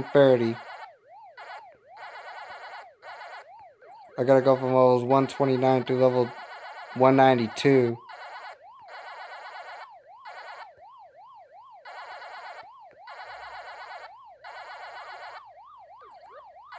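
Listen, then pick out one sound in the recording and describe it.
A video game character makes a quick, repeated chomping blip.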